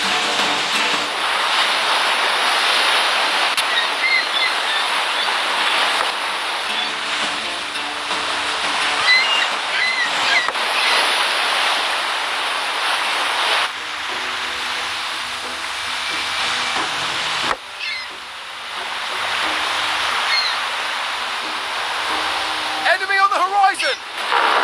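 Waves rush and splash against a sailing ship's hull.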